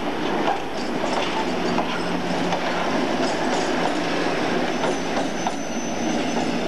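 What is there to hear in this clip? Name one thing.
A Class 56 diesel locomotive's engine drones as it passes close by.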